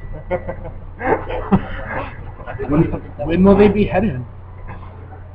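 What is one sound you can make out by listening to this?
Young men laugh together close by.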